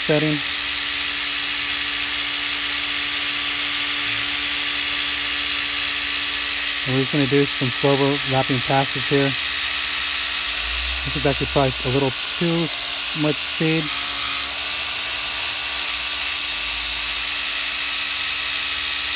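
An electric polisher whirs steadily.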